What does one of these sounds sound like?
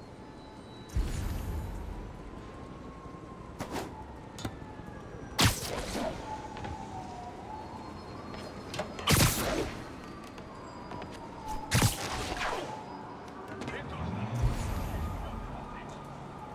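Wind rushes past in loud gusts during fast swinging.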